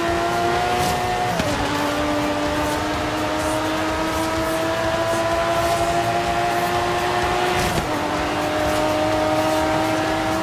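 A racing car engine roars at high revs, with the pitch climbing slowly and dropping as the gears shift.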